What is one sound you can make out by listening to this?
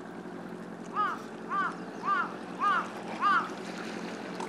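A bird calls several times in quick bursts.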